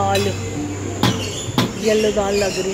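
A metal lid clinks against a serving dish.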